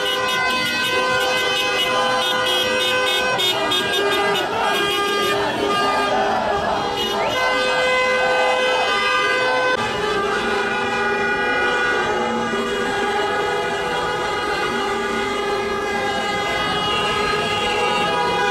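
Many car horns honk loudly and continuously.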